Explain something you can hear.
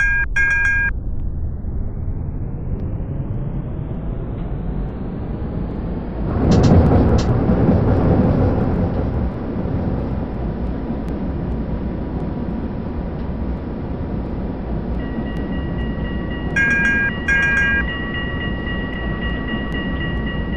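A tram motor whines, rising in pitch as the tram speeds up.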